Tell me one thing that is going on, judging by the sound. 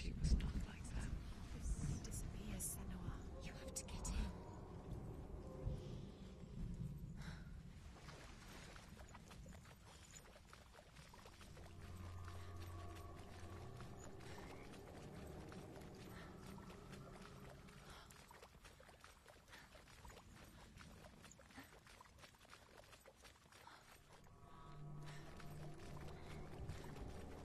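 Footsteps run over soft grass.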